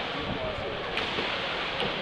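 Water splashes loudly as a kayak tips over.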